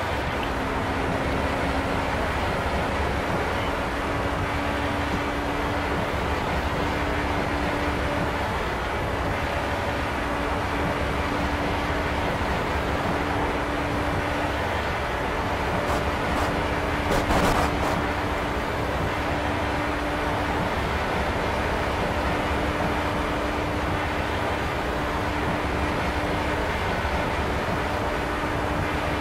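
An open-wheel racing car's engine screams at high speed, held in a high gear.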